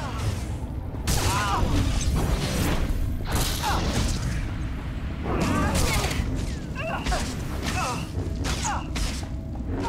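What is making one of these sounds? Energy blasts crackle and zap.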